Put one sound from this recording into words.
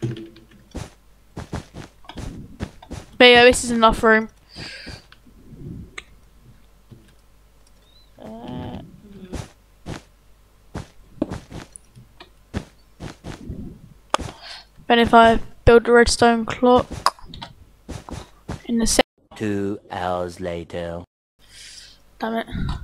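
Soft, quick thuds of blocks being placed in a game repeat rapidly.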